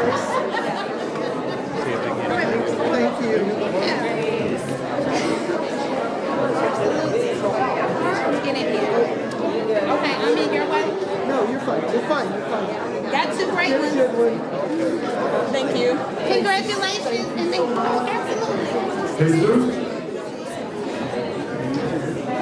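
Several men and women chat at once in a room.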